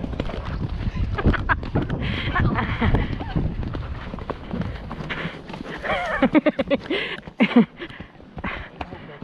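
A horse's hooves thud softly on a grassy track.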